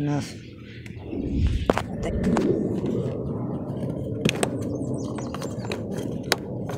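Fabric rustles and bumps close by.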